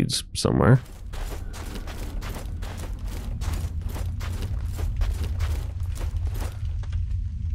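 Armoured footsteps crunch steadily through snow.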